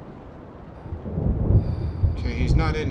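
A man speaks in a low voice close to a microphone.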